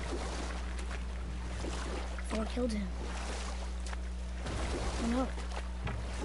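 Water laps against a wooden boat.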